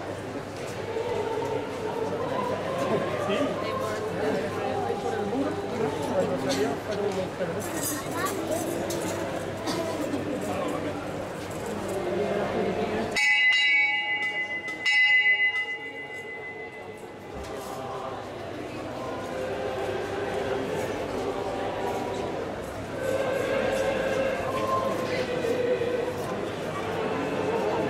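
A large crowd murmurs and chatters nearby.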